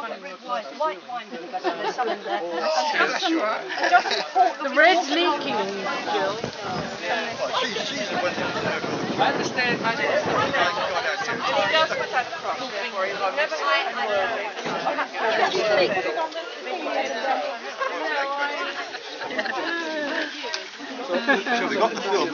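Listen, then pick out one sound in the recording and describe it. Older women chat and laugh up close.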